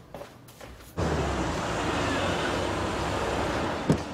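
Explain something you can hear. A car engine runs nearby.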